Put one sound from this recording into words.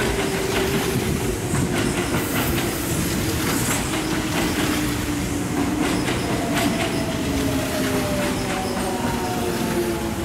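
A train rolls along the tracks with a steady rumble and clatter.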